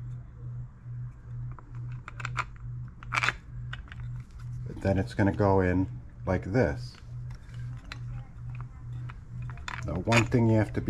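Plastic engine parts click and tap together as they are handled.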